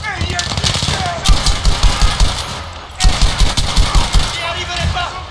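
Rifle shots fire in quick bursts, loud and close.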